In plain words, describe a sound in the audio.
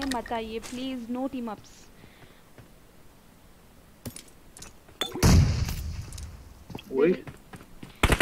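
A young woman talks close to a microphone.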